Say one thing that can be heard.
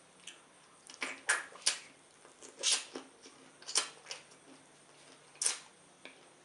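A man sucks and slurps loudly close to a microphone.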